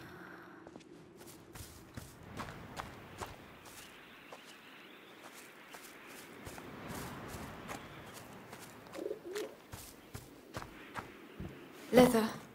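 Footsteps crunch over grass and gravel.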